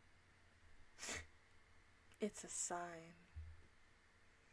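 A young woman speaks briefly and playfully close to a microphone.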